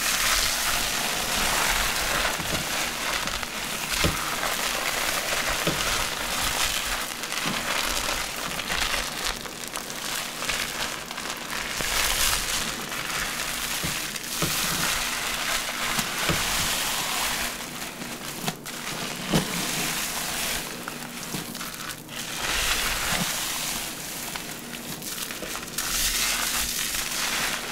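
Wet, soapy hair squelches and squishes as hands scrub it close up.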